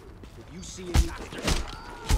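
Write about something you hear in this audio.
A heavy blow lands with a dull thud.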